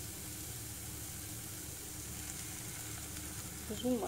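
Liquid pours into a pot.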